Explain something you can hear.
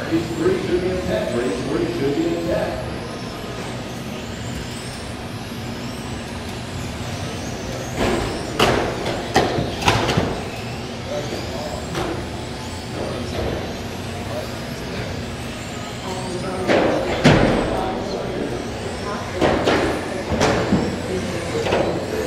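Small electric race cars whine as they speed around an indoor track.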